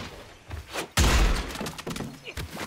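A loud blast booms and crackles.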